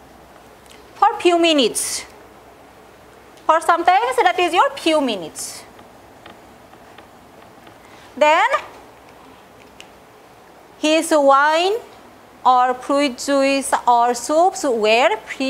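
A middle-aged woman speaks calmly, as if teaching, in short bursts.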